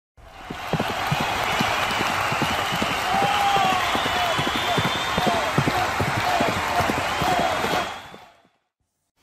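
Horses' hooves pound quickly on turf.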